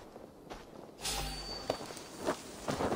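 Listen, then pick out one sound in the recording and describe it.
A blade strikes a body with a heavy slash.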